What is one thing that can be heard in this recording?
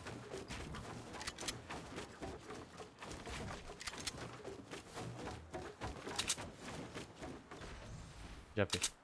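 Wooden building pieces clack quickly into place.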